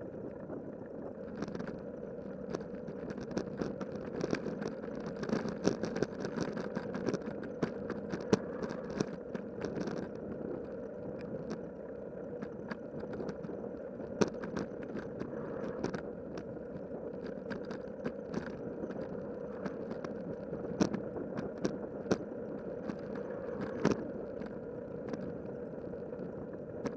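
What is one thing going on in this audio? Bicycle tyres hum on rough pavement.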